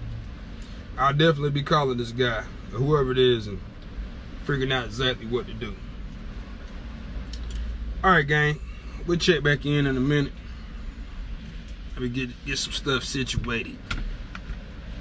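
A young man speaks calmly close by, in short phrases.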